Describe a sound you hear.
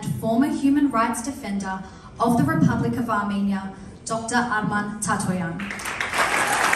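A woman speaks calmly through a microphone and loudspeakers in a large room.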